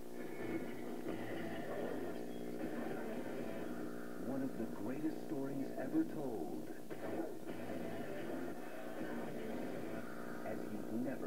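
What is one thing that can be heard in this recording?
A film soundtrack plays loudly through a television speaker.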